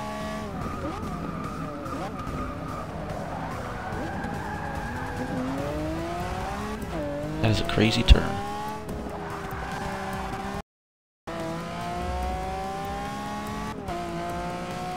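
A V12 supercar engine revs hard through the gears, its pitch dropping at each shift.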